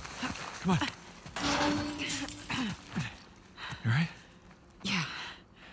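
A man speaks breathlessly, close by.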